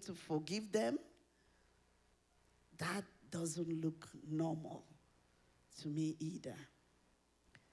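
A woman speaks with animation into a microphone through loudspeakers, pausing between phrases.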